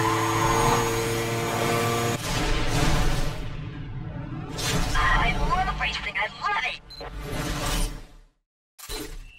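A race car engine roars at high speed and then slows.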